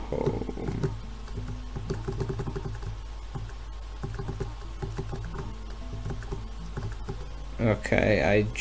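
Gentle game music plays.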